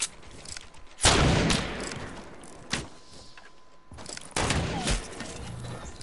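Gunshots crack loudly in a game.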